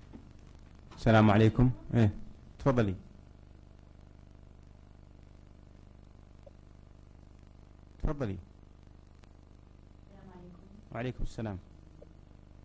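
A middle-aged man speaks calmly into a microphone, in short phrases with long pauses.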